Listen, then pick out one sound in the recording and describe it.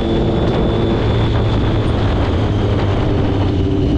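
A truck rumbles by close alongside.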